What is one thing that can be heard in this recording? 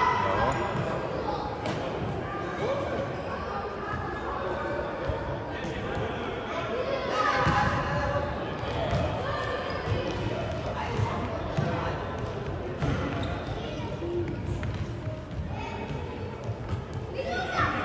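Young boys shout to each other across a large echoing hall.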